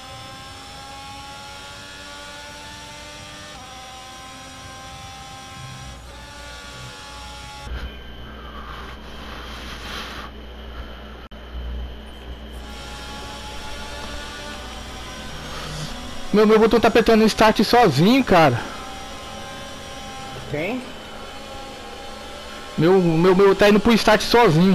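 A racing car engine whines at high revs, its pitch rising and dropping with gear changes.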